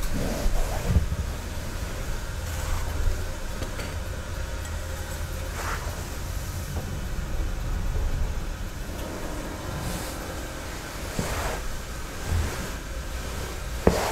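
Heavy cloth robes rustle.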